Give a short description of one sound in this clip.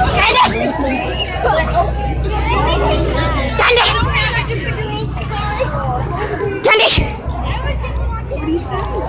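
A crowd of people chatters and calls out loudly nearby.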